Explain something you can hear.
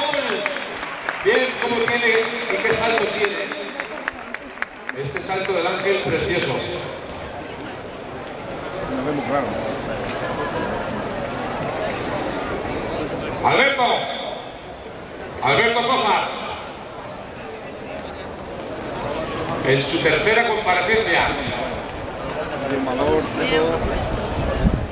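A large crowd murmurs and chatters in an open arena.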